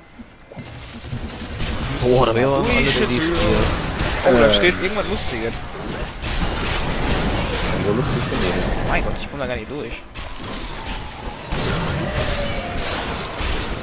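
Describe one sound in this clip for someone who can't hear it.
Heavy blows thud against creatures.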